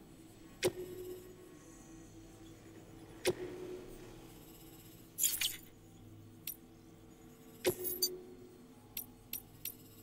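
Short electronic menu clicks ring out with brief humming tones.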